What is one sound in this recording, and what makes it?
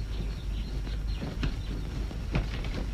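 A horse pushes through undergrowth.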